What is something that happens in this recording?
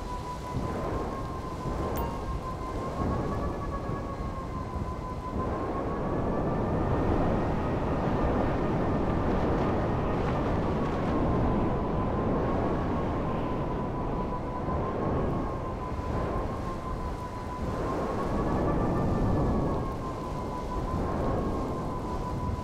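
A hover bike's engine whines steadily, its pitch gently rising and falling.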